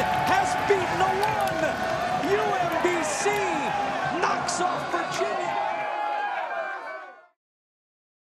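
A crowd of young men cheers and shouts excitedly close by.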